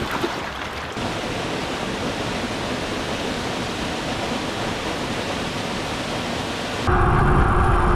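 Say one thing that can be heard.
A waterfall rushes steadily.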